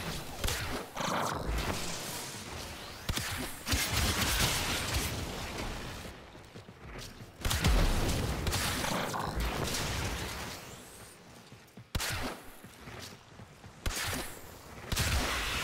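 Blades swish and slash.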